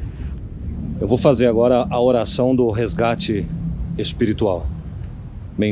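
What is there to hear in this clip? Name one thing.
A man talks calmly, close by, outdoors.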